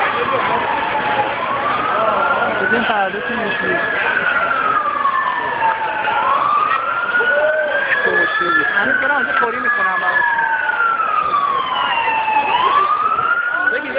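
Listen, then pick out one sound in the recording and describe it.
Police sirens wail up and down nearby, several overlapping.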